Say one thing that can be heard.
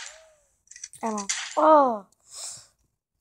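A short game tune plays when the game ends.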